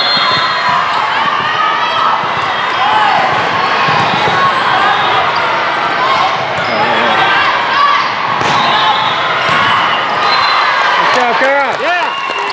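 A volleyball thuds against hands.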